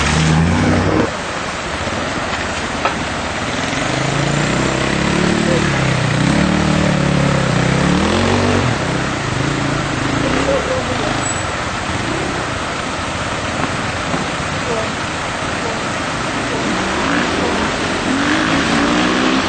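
Water rushes and splashes around the tyres of a vehicle.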